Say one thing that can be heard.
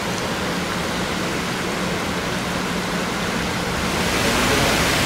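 A stream ripples and gurgles over rocks.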